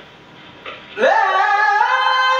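A young man sings loudly into a microphone, heard through a loudspeaker.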